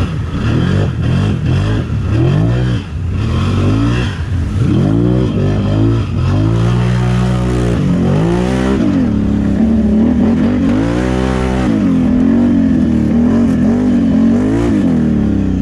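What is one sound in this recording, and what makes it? An engine roars and revs up and down close by.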